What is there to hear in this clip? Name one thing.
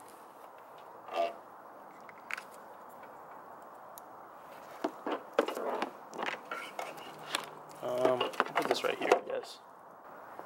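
Plastic parts click and rattle as they are handled close by.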